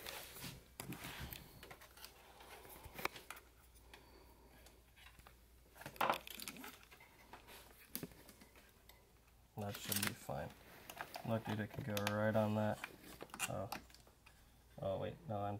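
Plastic engine parts click and rattle as they are handled.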